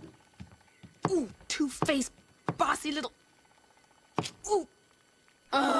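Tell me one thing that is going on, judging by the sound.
A young woman speaks sharply, close by.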